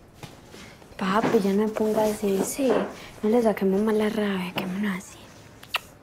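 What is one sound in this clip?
A young girl speaks softly and sweetly up close.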